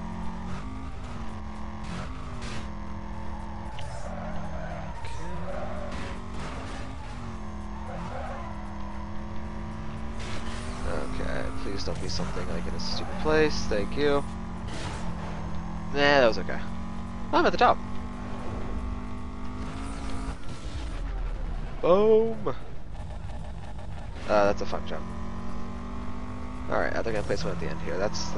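A racing car engine roars at high speed, rising and dropping in pitch as the gears shift.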